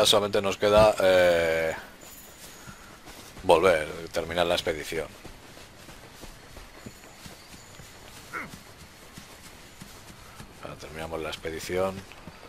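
Footsteps run through rustling grass.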